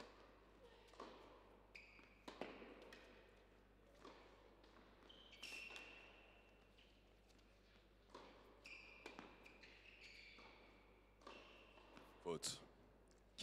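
A racket strikes a tennis ball sharply.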